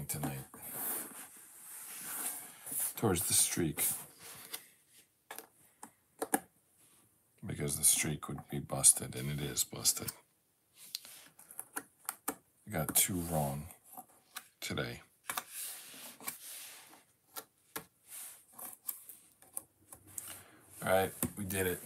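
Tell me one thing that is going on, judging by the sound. Jigsaw puzzle pieces click and tap softly on a table.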